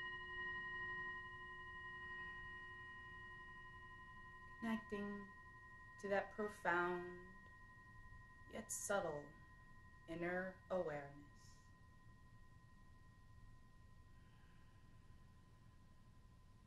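A singing bowl rings with a steady, lingering hum.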